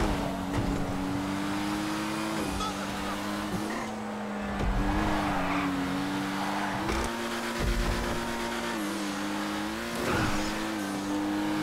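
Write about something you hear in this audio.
A car engine hums steadily at speed, shifting pitch as it changes gear.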